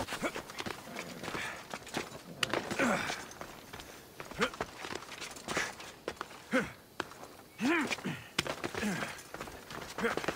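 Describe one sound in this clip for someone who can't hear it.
Hands and feet scrape while climbing rock.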